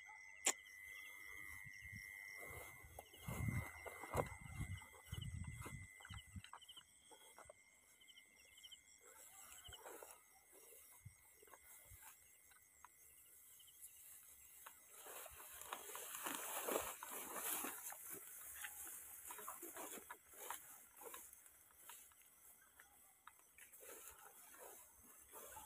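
Footsteps swish and rustle through tall grass.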